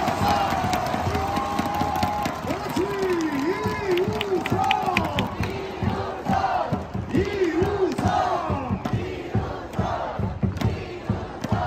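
A large crowd sings and chants in unison, loud and close, in an open stadium.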